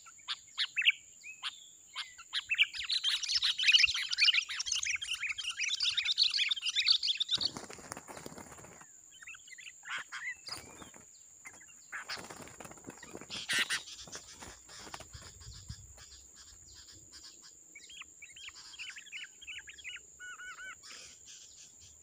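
Small birds chirp and squeal rapidly close by.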